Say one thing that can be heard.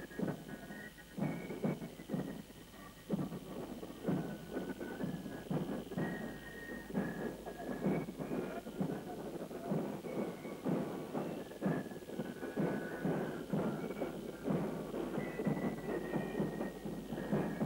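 A drum beats out a steady marching rhythm.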